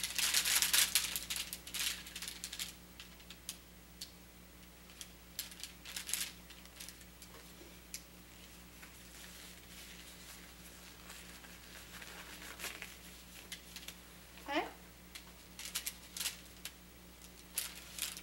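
Paper packaging crinkles and rustles as it is unwrapped.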